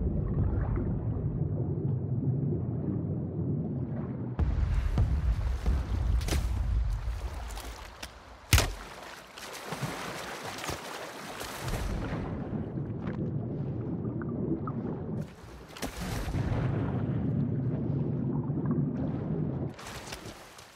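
Water rumbles and gurgles, muffled as if heard underwater.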